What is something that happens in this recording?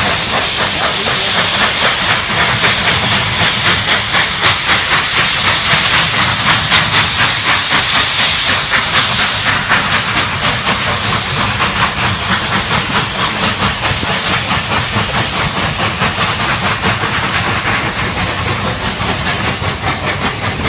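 A steam locomotive chugs rhythmically close by.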